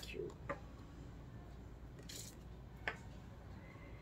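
A card is laid down on a wooden table with a light tap.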